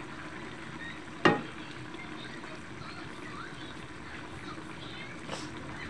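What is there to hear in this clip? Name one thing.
A wooden spatula knocks and scrapes against a metal wok.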